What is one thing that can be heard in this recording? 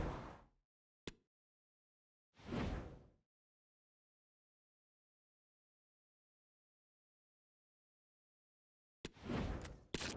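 A crisp click sounds.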